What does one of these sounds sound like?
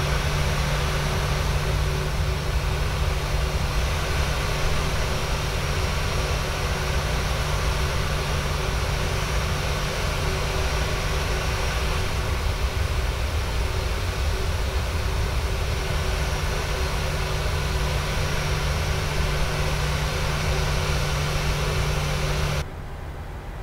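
A jet engine whines and rumbles steadily as an airliner taxis.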